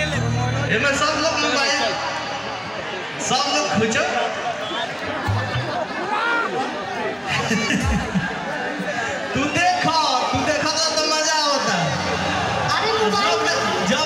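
A woman sings into a microphone through loud speakers.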